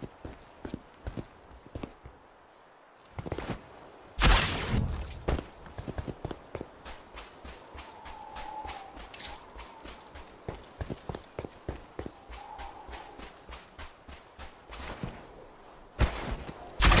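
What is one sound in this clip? Footsteps crunch quickly over dirt and rock.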